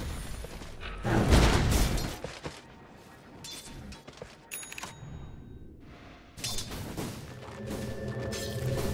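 Game sound effects of clashing blows and magic bursts ring out in quick bursts.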